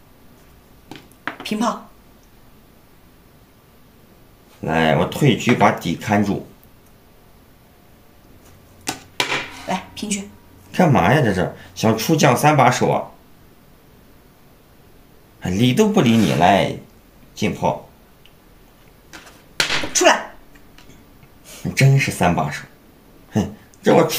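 Game pieces click down on a wooden board now and then.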